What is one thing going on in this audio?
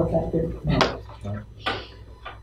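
A man speaks briefly in a room, close by.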